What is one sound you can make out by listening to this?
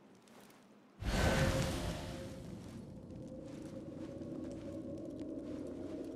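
A loud blast bursts out and a dusty rushing roar follows.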